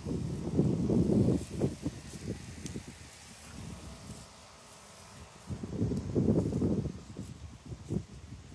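Wind rumbles and buffets against the microphone outdoors in gusts.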